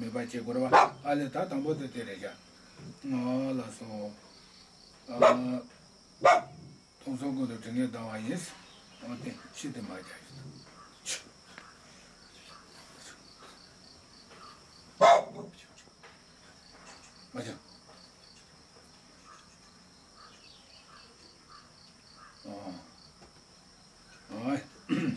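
An elderly man speaks calmly nearby, in a slow chanting voice.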